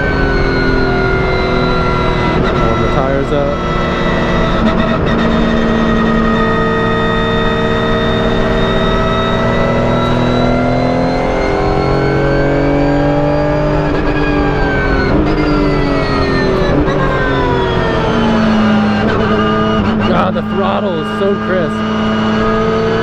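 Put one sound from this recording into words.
A racing car's engine roars loudly from inside the cockpit, its pitch rising through the gears and dropping under braking.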